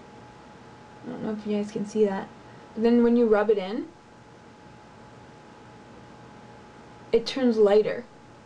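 A young woman speaks calmly and close to a microphone, in short phrases.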